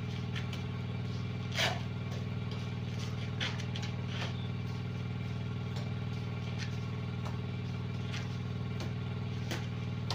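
A trowel scrapes and slaps wet plaster onto a wall.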